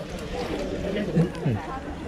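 Water trickles over hands.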